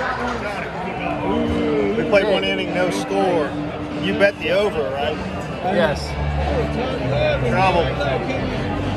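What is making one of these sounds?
A middle-aged man talks close by with animation.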